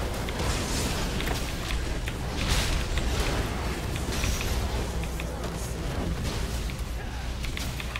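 Game sound effects of a fight clash and whoosh.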